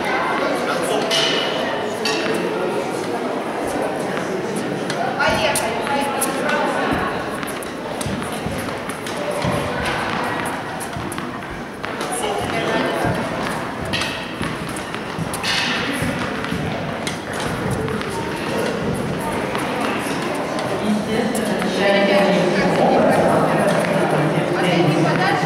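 Young children chatter and call out in the echoing hall.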